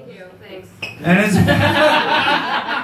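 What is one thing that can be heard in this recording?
A crowd cheers and laughs in a small room.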